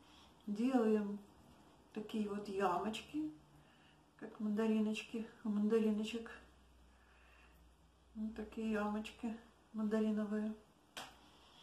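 An elderly woman speaks calmly close by.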